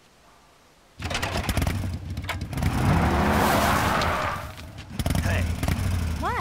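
A motorcycle engine starts and roars as it rides away.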